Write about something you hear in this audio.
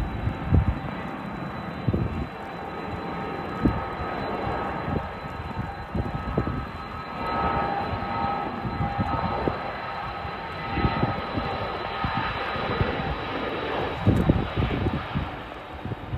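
A propeller plane's engines roar steadily as it speeds along a runway in the distance.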